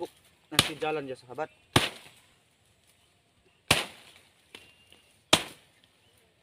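A man chops through plant stalks with sharp blows.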